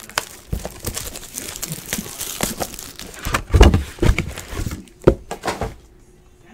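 Cardboard boxes knock and rustle as hands handle them.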